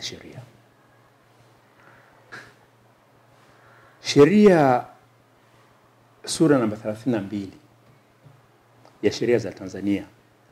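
A middle-aged man speaks calmly and slowly, close to a microphone, with long pauses.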